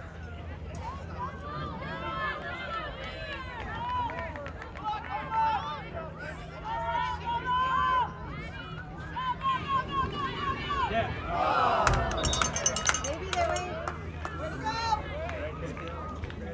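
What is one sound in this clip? Spectators shout and cheer from the sidelines outdoors.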